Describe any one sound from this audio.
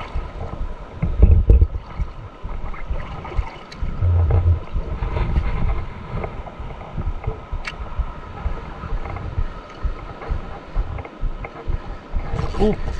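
Water laps and splashes against a small boat.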